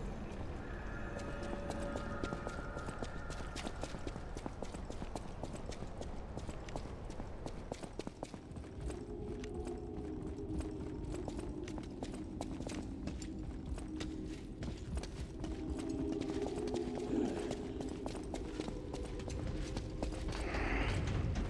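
Footsteps run quickly on a hard floor.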